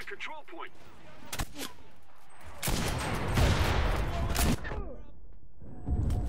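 Rifle shots crack nearby.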